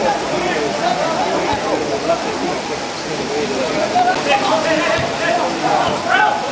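Adult spectators nearby talk and call out over each other outdoors.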